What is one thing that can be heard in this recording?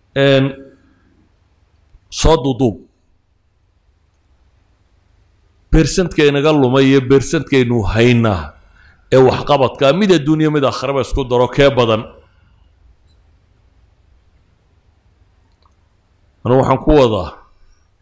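A middle-aged man speaks calmly into a microphone, in bursts with pauses.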